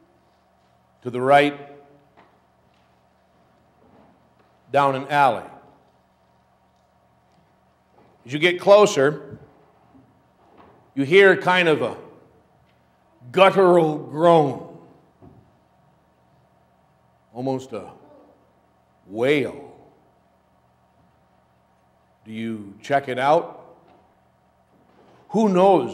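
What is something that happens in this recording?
A man speaks slowly and calmly into a microphone, with pauses, in an echoing hall.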